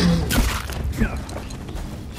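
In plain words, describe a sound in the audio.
A heavy club thuds hard against something.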